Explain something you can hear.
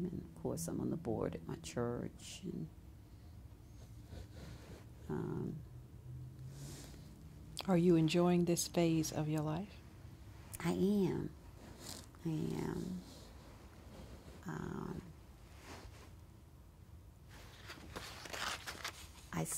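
An elderly woman speaks calmly and thoughtfully into a nearby microphone, with pauses.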